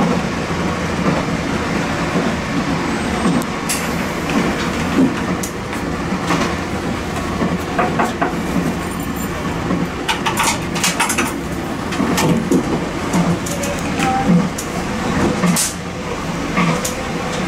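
Train wheels clack and squeal over the rail joints.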